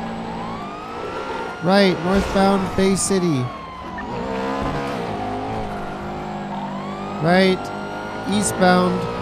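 A car engine hums and revs up and down while driving.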